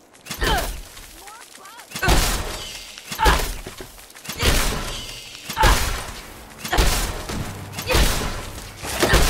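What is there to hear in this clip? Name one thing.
A heavy gun fires loud booming blasts, about one every second.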